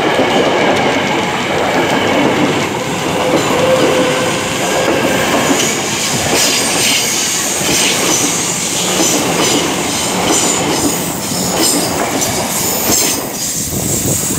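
A passing train rumbles and clatters loudly close by, then moves away.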